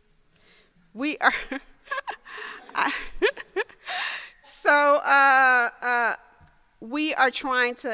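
An older woman speaks with animation into a microphone.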